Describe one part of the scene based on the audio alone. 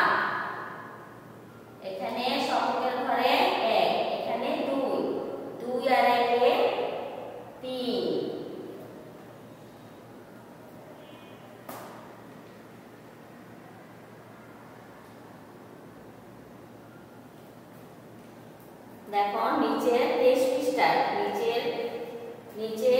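A woman speaks steadily, as if explaining, close by.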